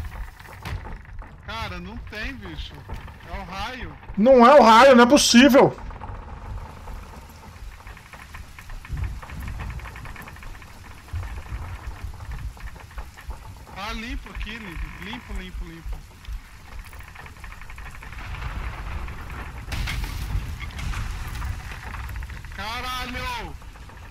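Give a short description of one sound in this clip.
Wind and rain roar in a storm over rough waves.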